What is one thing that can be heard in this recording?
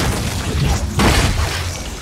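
A magic blast booms and crackles loudly.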